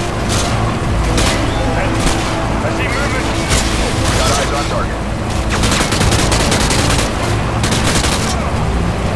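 Rifle gunfire rattles in rapid bursts, echoing loudly.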